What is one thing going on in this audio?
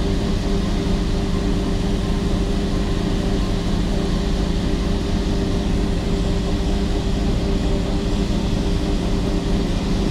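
A heavy engine rumbles steadily close by.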